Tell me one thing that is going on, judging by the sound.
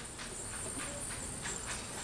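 A young woman speaks through a microphone and loudspeaker.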